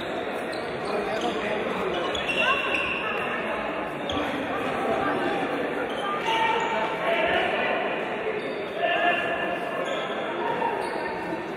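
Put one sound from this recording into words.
Sports shoes squeak sharply on a hard court.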